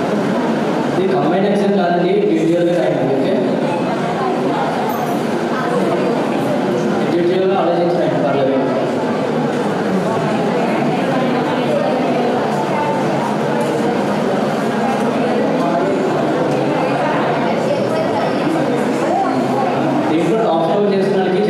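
A man speaks steadily into a microphone, heard over loudspeakers.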